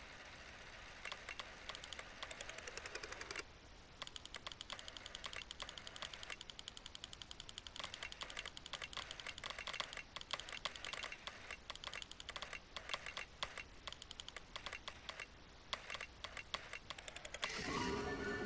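Rapid, soft ticking clicks sound as points of light link up one by one.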